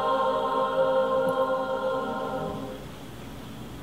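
A large choir sings a held chord in a big hall.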